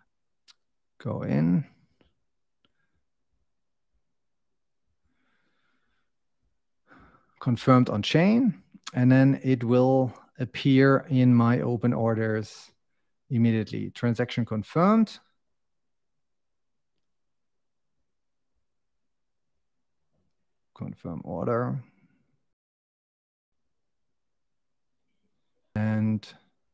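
A man speaks calmly into a close microphone, with pauses.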